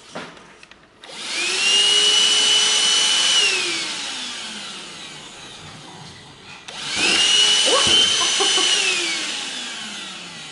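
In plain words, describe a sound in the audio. A hand vacuum cleaner whirs loudly, starting and winding down twice.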